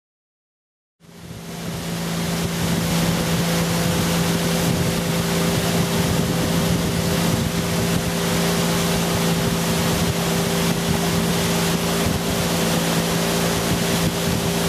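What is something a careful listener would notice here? Wind blows across a microphone.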